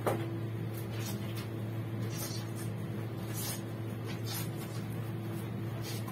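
Wet cloth is wrung and squelches.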